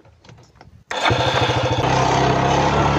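A quad bike engine starts and runs with a loud rumble.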